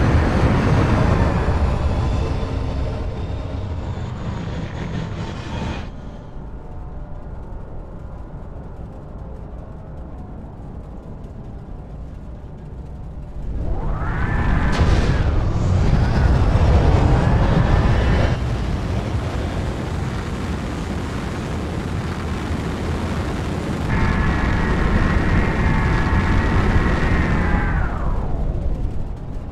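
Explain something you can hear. A spacecraft engine hums low and steady.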